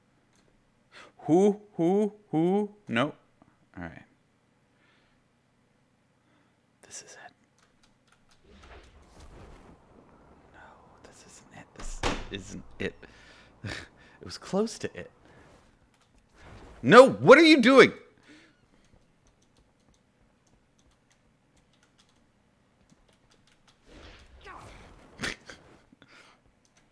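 A young man speaks close into a microphone in short bursts with pauses.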